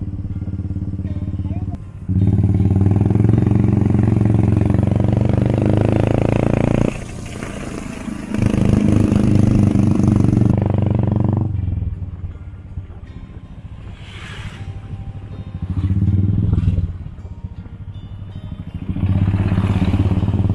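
A motorcycle engine hums steadily up close, rising and falling with the throttle.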